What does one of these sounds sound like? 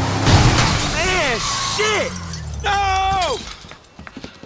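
A man shouts in panic.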